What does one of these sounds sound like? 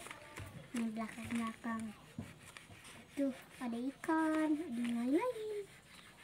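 A sheet of paper rustles as it is lifted and turned.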